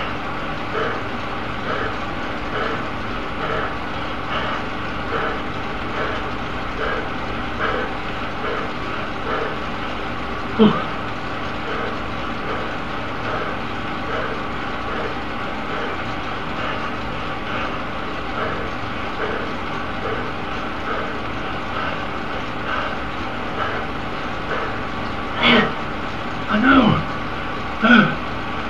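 An indoor bike trainer whirs steadily with a rhythmic pulse of pedal strokes.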